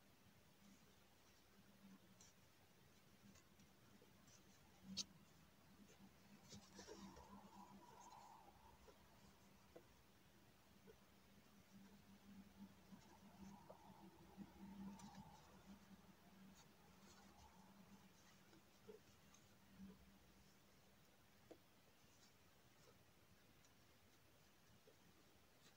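A crochet hook softly rustles and clicks through yarn.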